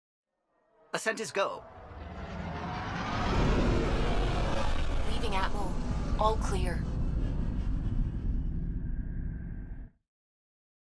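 A spaceship's engines roar loudly as it flies past.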